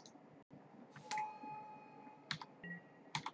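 A soft chime rings as a card is played.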